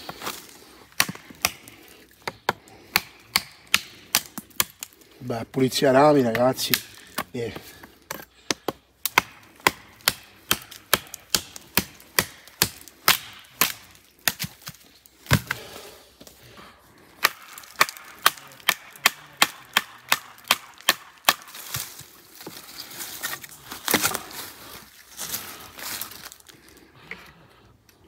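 A knife blade chops sharply and repeatedly into a wooden stick.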